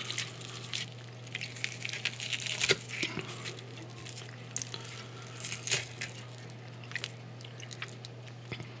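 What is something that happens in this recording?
A knife and fork scrape and clink against a plate close by.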